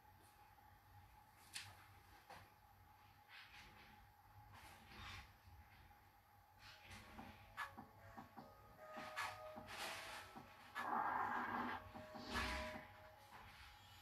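A small brush strokes softly across a shoe.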